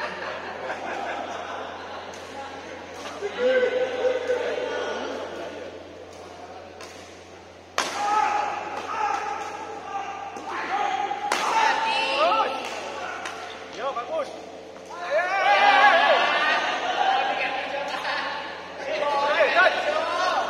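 Men talk and call out across a large echoing hall.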